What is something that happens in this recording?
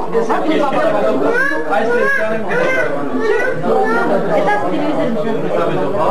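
A man laughs and talks with animation.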